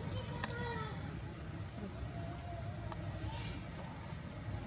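A baby monkey squeaks softly and faintly.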